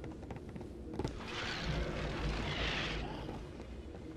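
A heavy stone statue crashes down and crumbles.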